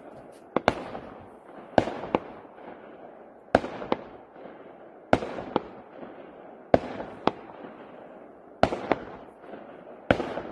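Fireworks burst with sharp bangs that echo across open water.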